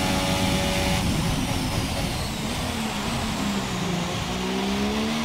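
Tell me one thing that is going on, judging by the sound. A racing car engine drops sharply in pitch as the car brakes and shifts down.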